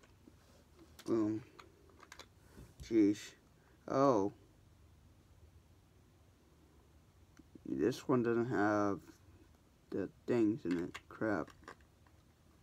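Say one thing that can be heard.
A young man speaks briefly and calmly close by.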